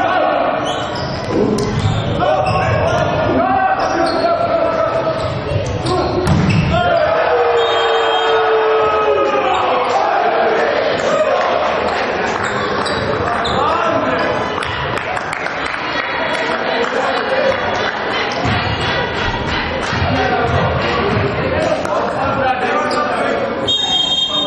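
A volleyball is spiked and slaps off hands in a large echoing hall.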